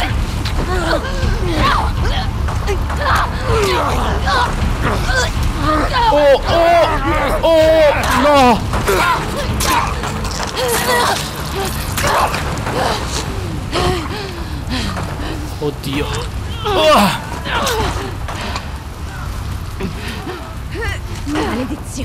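A young woman screams and gasps in panic.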